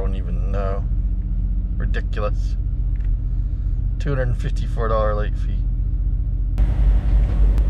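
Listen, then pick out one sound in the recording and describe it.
A middle-aged man speaks calmly close to a microphone.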